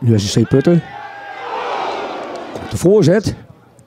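A crowd cheers loudly.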